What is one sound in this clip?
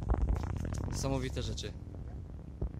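A young man speaks briefly outdoors.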